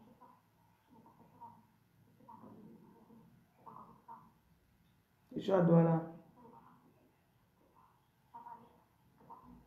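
A young woman speaks quietly and close by, with one sudden louder word.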